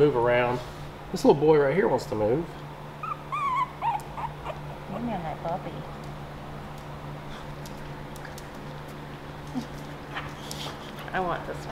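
Young puppies whimper and squeal in high, wavering cries.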